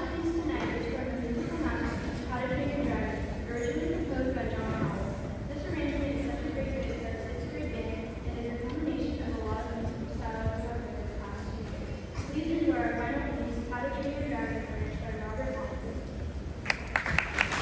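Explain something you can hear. A school band plays music in a large echoing hall.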